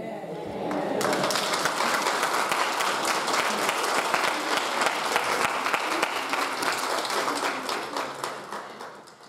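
A crowd claps their hands steadily.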